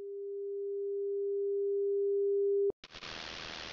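A steady test tone beeps from a television, growing louder.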